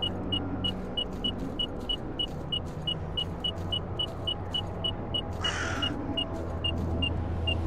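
A detector beeps quickly and steadily.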